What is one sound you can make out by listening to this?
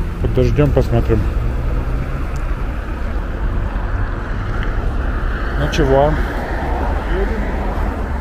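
Young men shout and call out nearby outdoors.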